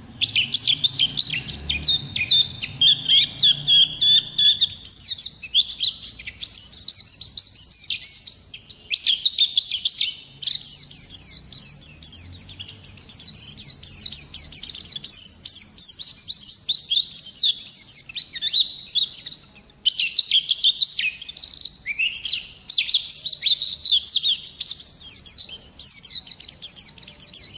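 A small songbird sings a fast, warbling song close by.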